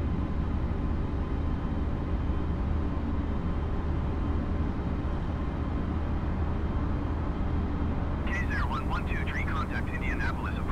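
A jet airliner's engines drone steadily from inside the cockpit.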